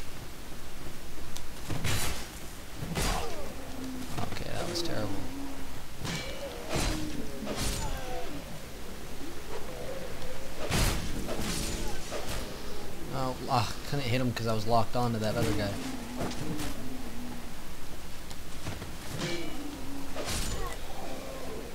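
A sword swings and strikes with sharp metallic hits.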